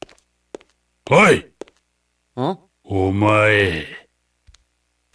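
A man shouts out sharply.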